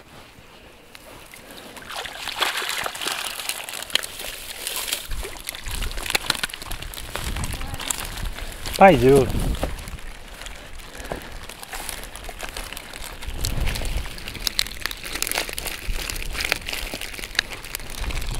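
Dry grass rustles and crackles underfoot.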